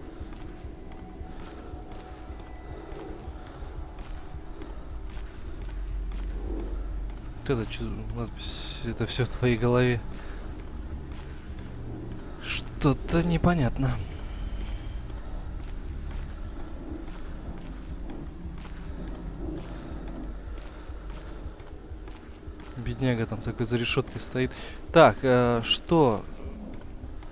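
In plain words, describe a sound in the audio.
Footsteps crunch slowly over a gritty floor.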